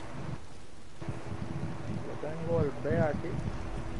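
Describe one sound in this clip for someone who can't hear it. Explosions boom and fire crackles nearby.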